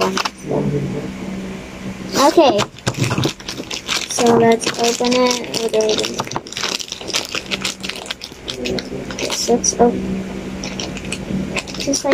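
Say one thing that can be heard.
Plastic wrapping crinkles and rustles in a girl's hands.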